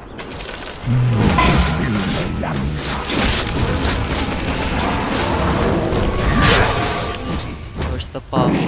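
Game weapons clash and thud in a brawl.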